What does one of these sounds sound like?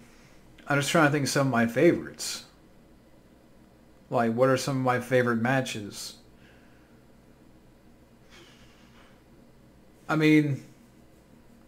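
A man speaks calmly and close to the microphone, in short phrases with pauses.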